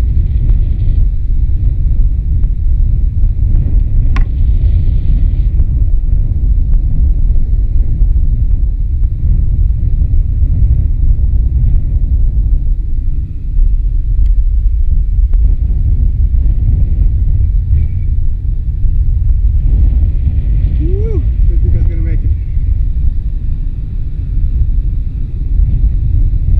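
A glider whooshes past overhead.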